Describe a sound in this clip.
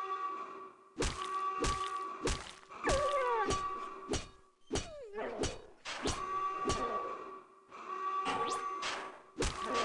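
An axe swings and strikes with sharp thuds.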